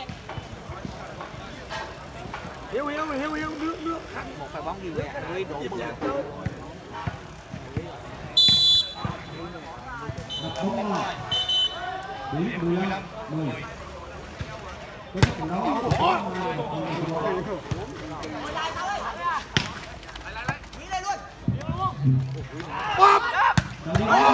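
Men talk and shout outdoors.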